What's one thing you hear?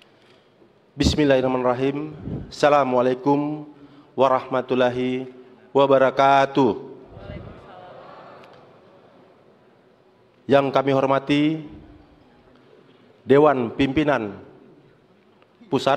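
A man speaks steadily into a microphone, in short bursts with pauses.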